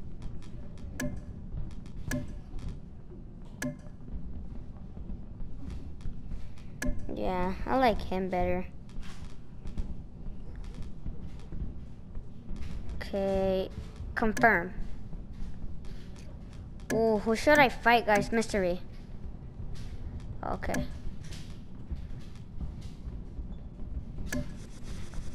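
Short menu clicks sound as options are picked.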